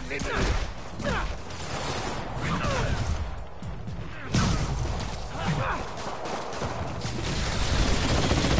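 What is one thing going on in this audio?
Punches and blows land in a fight, with thuds and whooshes.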